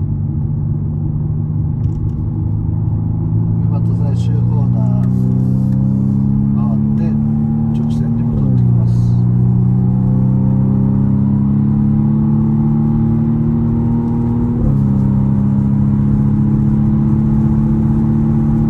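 A car engine revs steadily higher, then drops in pitch as the gears shift up.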